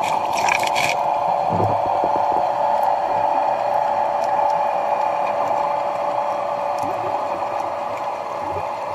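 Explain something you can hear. Water churns with a muffled, steady underwater hum.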